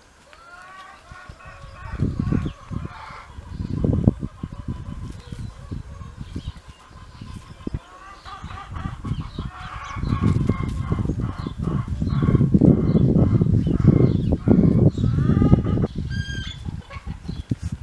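Dogs whine and yelp eagerly.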